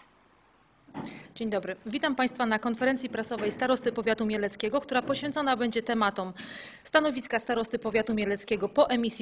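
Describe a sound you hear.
A young woman speaks calmly into microphones.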